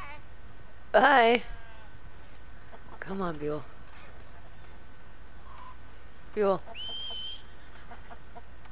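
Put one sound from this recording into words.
Chickens cluck and squawk nearby.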